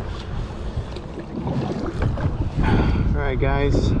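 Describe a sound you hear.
A wooden paddle splashes through water.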